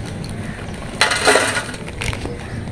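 Crisps rattle as they are poured from a plastic packet onto a metal plate.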